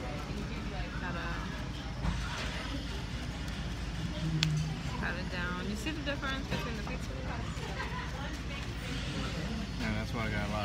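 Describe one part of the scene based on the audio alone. A paper napkin rustles softly as it presses against pizza.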